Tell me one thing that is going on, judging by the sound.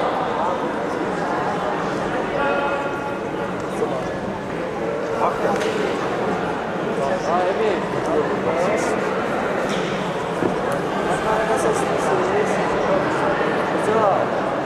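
A large echoing hall fills with the murmur of a crowd.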